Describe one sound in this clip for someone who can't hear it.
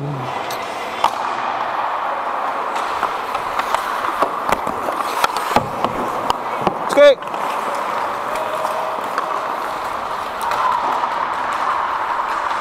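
Hockey sticks clack against the ice and a puck.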